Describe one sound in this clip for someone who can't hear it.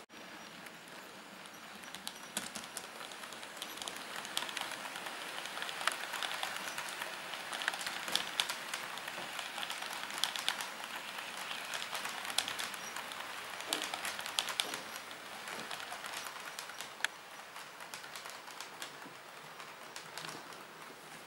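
A model train rattles and clicks along the tracks close by.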